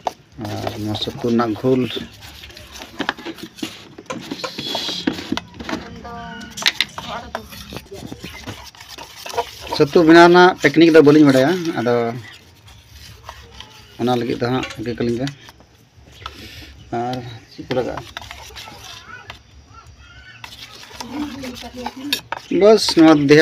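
A metal spoon scrapes and clinks against a steel bowl while stirring a thick batter.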